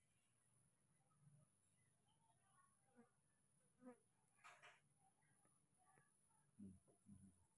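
A tissue rubs softly over a baby monkey's fur.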